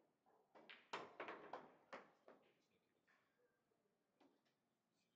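Billiard balls clack together and roll across the table.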